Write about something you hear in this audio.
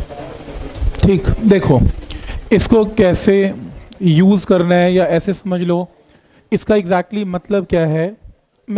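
A man speaks calmly and clearly, like a teacher explaining.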